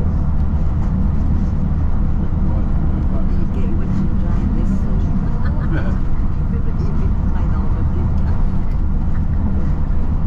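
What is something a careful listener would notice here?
A car passes by in the opposite direction.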